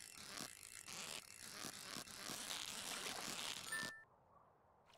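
A fishing reel whirs as a line is reeled in.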